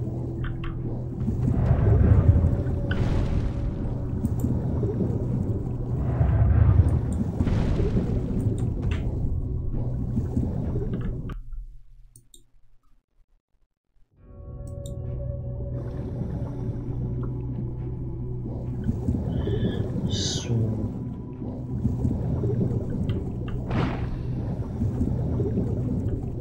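A drill rumbles and grinds through rock.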